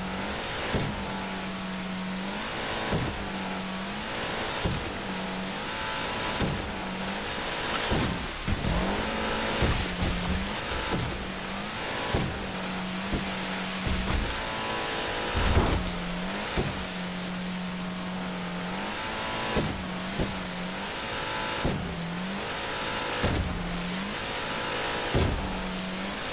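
Water sprays and churns against a speeding boat's hull.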